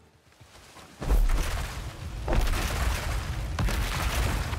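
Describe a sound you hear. A huge rock slab crashes down with a deep, loud rumble.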